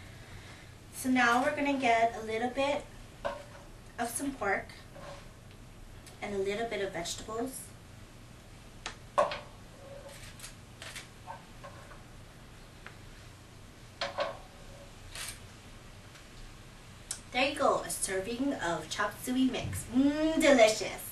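A woman speaks calmly and clearly into a nearby microphone.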